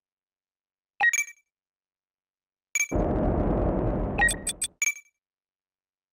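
Short electronic menu chimes blip.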